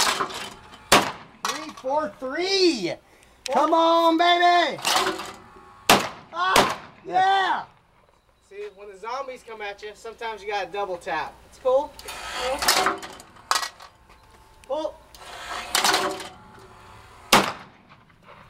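A semi-automatic 12-gauge shotgun fires sharp shots outdoors in open country.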